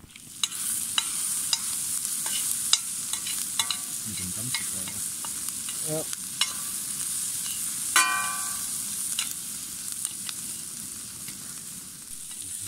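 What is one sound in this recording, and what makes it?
A metal spoon scrapes and clicks against a frying pan.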